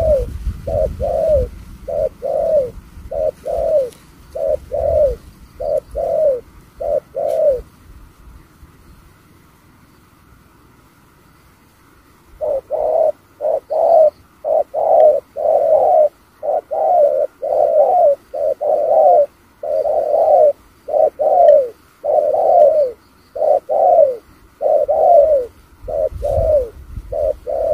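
Doves coo over and over, close by.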